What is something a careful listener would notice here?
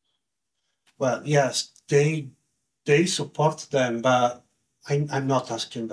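A man speaks calmly into a close microphone, as in an online talk.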